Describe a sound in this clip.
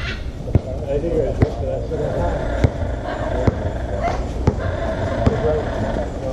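A basketball bounces steadily on a hard outdoor court.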